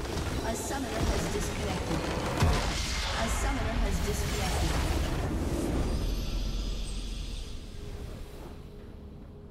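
Loud magical blasts and crashes ring out, then fade.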